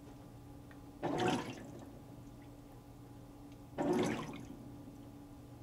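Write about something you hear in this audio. Water sloshes and swishes in a washing machine drum.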